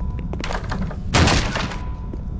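A pistol fires a single loud shot.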